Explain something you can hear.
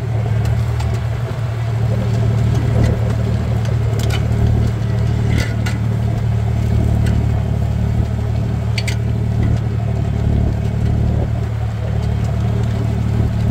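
A plough turns over soil with a soft scraping rush.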